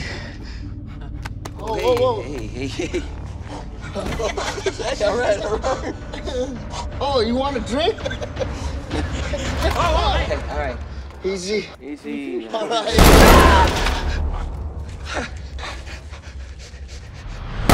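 A chimpanzee screams loudly.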